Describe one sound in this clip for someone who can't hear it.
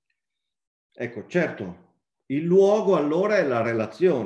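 A middle-aged man speaks calmly and with some animation into a microphone, heard as if over an online call.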